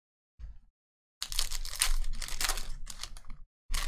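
Foil card wrappers crinkle and tear.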